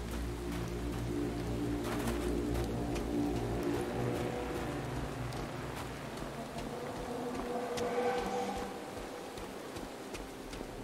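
Footsteps scrape and scuff on rock.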